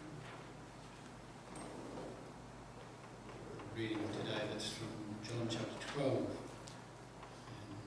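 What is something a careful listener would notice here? A middle-aged man reads aloud calmly through a microphone in an echoing room.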